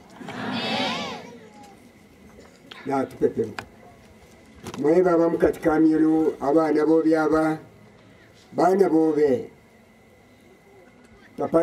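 A man preaches loudly into a microphone in bursts, his voice drawn out and sung.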